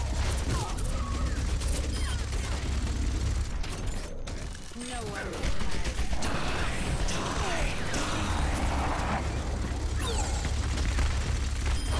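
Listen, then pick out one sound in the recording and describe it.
A gun fires in a video game.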